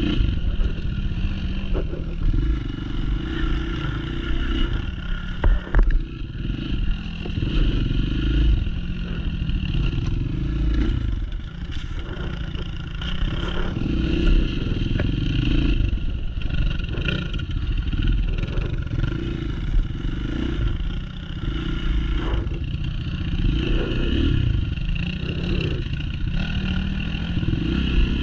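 A dirt bike engine revs and rumbles up close, rising and falling as it rides over bumpy ground.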